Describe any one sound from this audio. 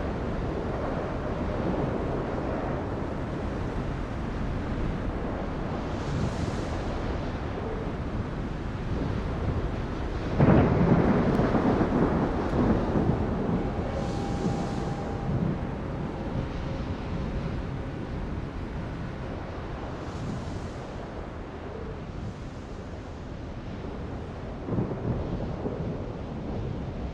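Water rushes and splashes against a ship's bow.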